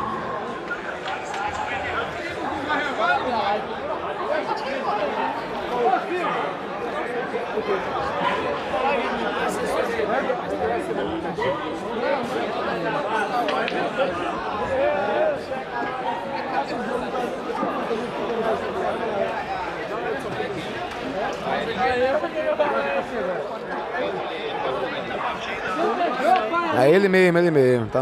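A crowd of men chatters loudly all around.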